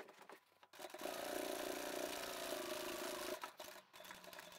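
A sewing machine stitches in short runs.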